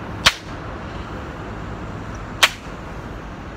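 A man claps his hands twice, sharply, outdoors.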